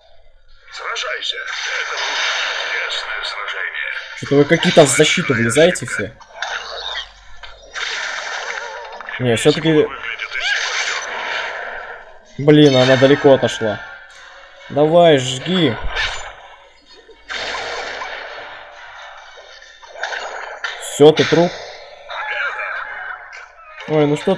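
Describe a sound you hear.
Game battle effects whoosh and crash with bursts of noise.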